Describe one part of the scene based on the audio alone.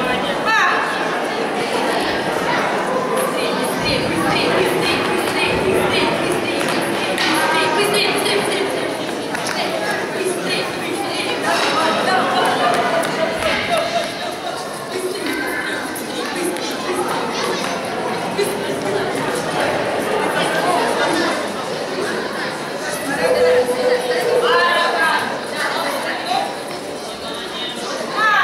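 A crowd of adults and children chatters nearby in an echoing hall.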